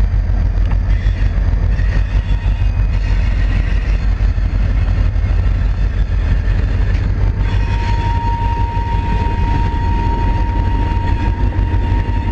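A diesel locomotive engine rumbles loudly close by.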